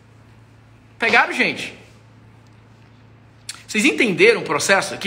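A young man speaks calmly and close up, in short bursts.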